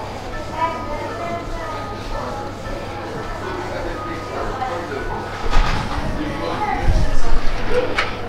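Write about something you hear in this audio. A printer whirs and hums as it feeds out a sheet.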